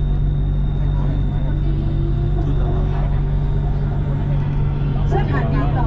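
A train's motor whines, rising in pitch as the train picks up speed.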